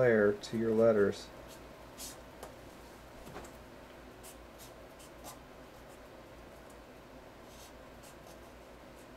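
A felt marker squeaks and scratches on paper in short strokes.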